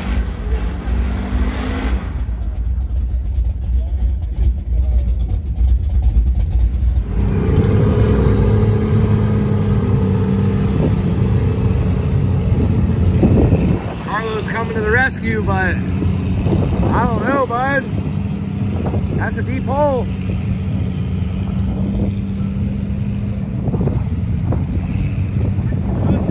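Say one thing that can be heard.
A truck engine roars loudly and revs.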